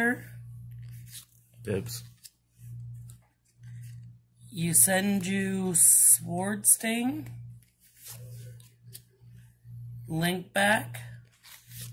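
Playing cards slide and rustle as a hand flips through them.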